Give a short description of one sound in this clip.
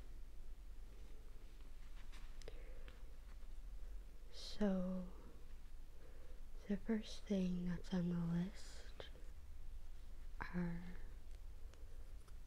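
Paper rustles softly as a sheet is handled.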